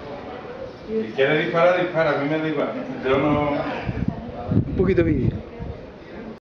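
A man talks loudly nearby outdoors.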